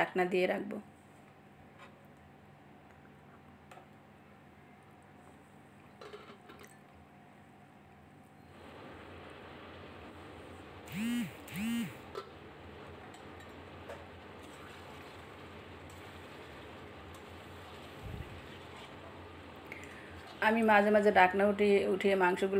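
A spatula scrapes and stirs a thick curry in a metal pan.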